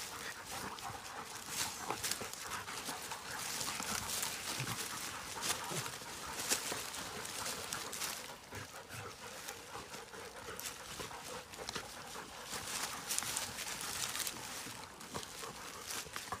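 A dog rustles through dry undergrowth.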